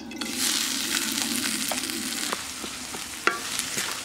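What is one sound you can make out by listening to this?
A wooden spatula scrapes against a metal pan.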